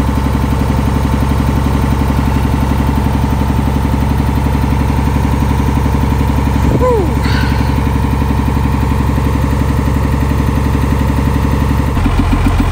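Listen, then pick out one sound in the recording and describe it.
A diesel truck engine idles with a steady low throb.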